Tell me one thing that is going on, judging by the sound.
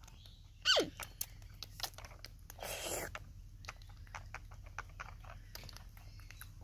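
Small hands softly rustle and pat a knitted toy.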